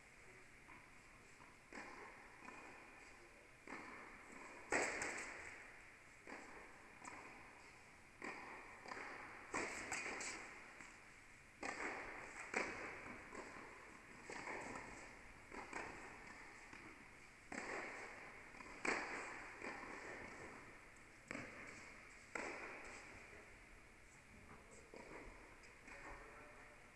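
Tennis balls are struck with rackets, each hit echoing around a large indoor hall.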